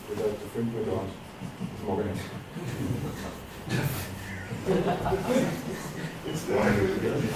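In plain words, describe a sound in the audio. A man speaks with animation to an audience, in a room with some echo.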